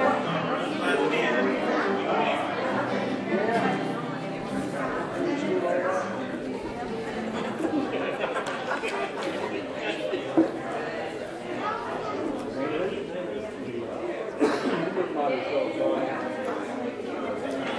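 Many people chat and murmur at once in a large echoing hall.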